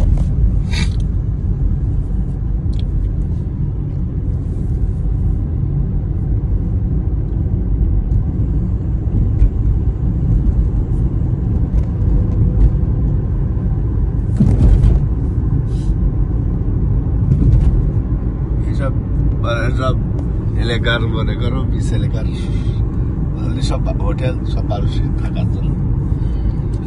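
A car's engine hums steadily from inside as it drives.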